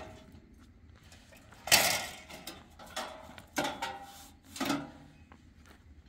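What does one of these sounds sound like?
A metal grill clanks as it is set down and moved on stony ground.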